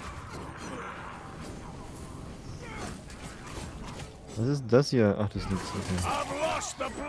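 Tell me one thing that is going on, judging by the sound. Magic beams crackle and hum in a fast fight.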